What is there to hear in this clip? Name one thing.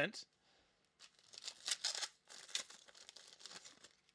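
A foil pack crinkles and tears as it is opened.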